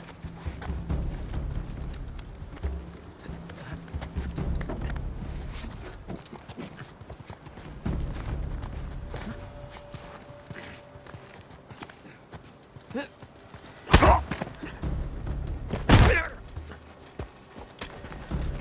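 Footsteps thud on stone as a man runs.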